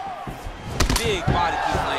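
A heavy kick lands with a sharp smack.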